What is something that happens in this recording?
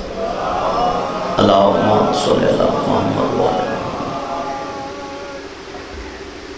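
A man speaks forcefully into a microphone over loudspeakers, with a slight echo.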